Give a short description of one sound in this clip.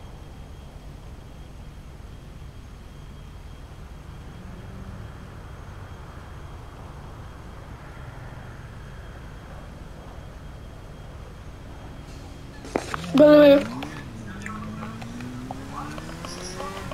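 A motorcycle engine runs.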